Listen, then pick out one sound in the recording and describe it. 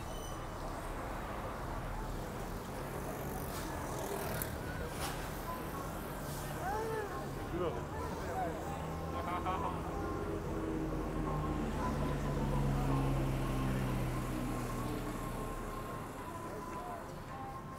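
Cars drive past on a city street.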